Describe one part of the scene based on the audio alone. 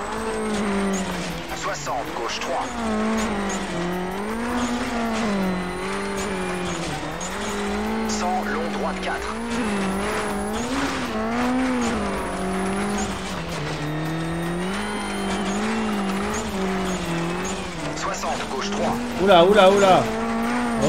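A rally car engine revs up and down as gears change.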